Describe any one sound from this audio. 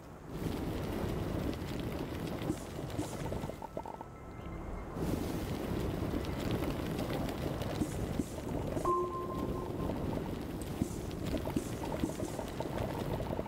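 A game tool hums and crackles as it digs away soil in bursts.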